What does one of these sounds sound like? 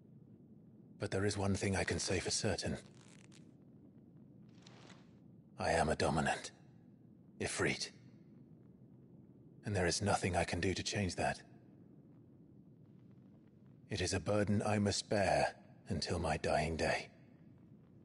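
A young man speaks calmly and gravely, close by.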